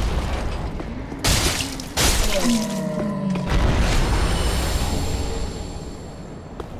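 A large winged creature roars and shrieks.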